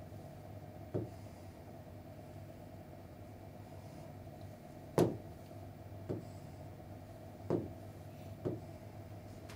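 A marker taps on a board.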